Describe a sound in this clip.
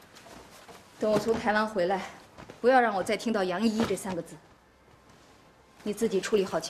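A middle-aged woman speaks firmly and sternly nearby.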